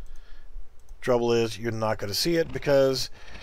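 A man speaks calmly and close up through a microphone.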